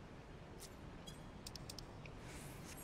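Short bright chimes ring out as a gate opens.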